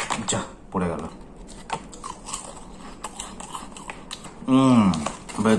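A man crunches on a snack while chewing.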